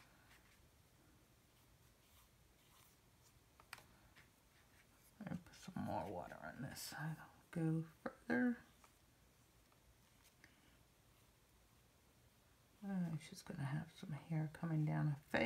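A paintbrush scratches softly across a textured surface.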